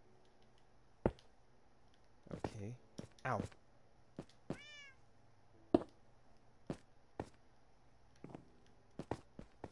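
Short knocks sound as blocks are placed and broken in a game.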